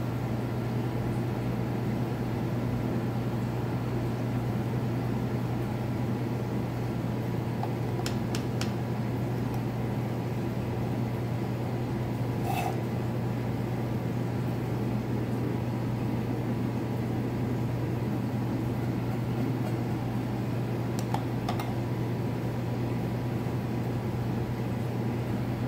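An aquarium pump hums steadily.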